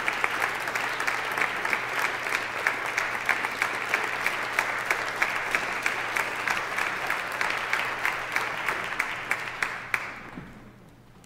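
A large audience applauds loudly in an echoing hall, then stops.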